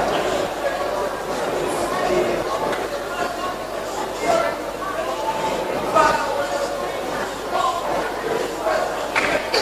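A crowd of men and women sings together in a large echoing hall.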